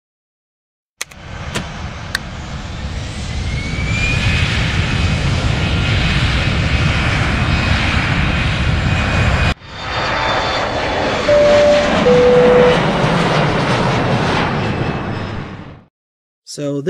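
Aircraft engines roar steadily, then die away.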